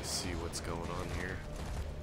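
A heavy machine gun fires a loud burst.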